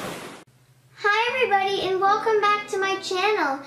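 A young girl speaks with animation close to a microphone.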